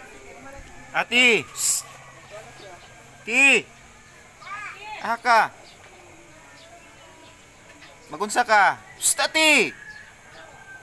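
A toddler calls out in short, high cries close by.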